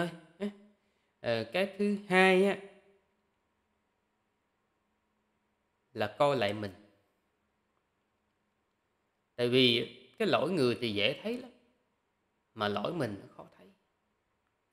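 A young man speaks calmly and close into a microphone, in short phrases with pauses.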